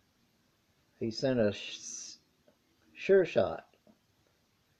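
An older man speaks briefly and calmly, close by.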